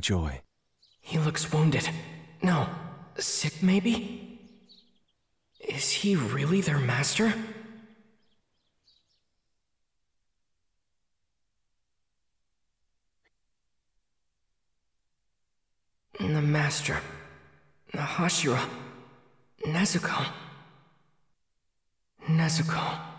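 A young man speaks quietly, as if thinking aloud.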